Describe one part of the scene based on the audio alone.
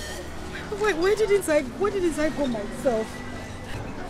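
A middle-aged woman speaks in a crying, wailing voice close by.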